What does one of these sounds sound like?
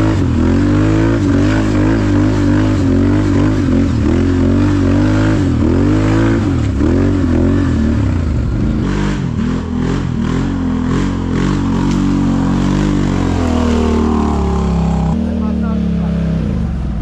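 A quad bike engine revs loudly up close, rising and falling in pitch.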